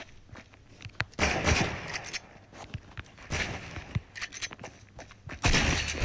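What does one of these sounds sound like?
Building pieces snap into place with quick clicks.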